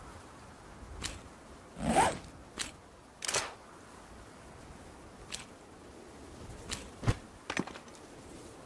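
Short clicks and rustles sound as game inventory items are picked up and dropped.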